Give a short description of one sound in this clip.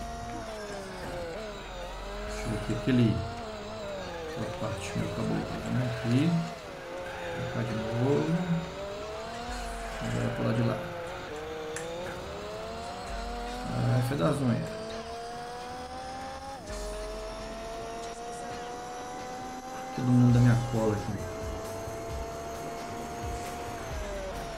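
A racing car engine whines and revs up and down as it shifts gears.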